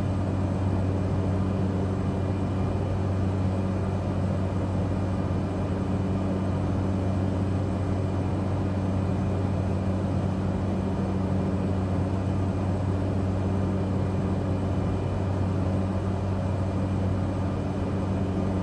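A propeller aircraft engine drones steadily from inside the cockpit.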